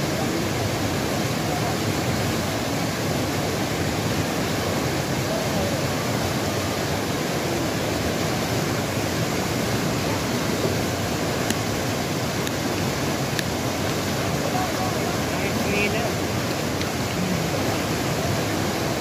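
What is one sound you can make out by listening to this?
A fast mountain river roars and rushes over rocks.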